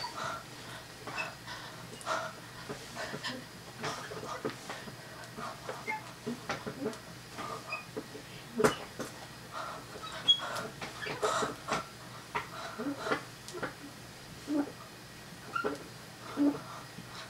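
A boy claps his hands.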